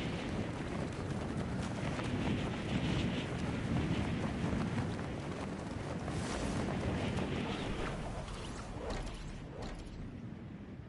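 Wind rushes loudly past during a fast freefall.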